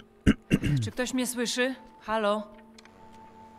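A voice calls out over a radio.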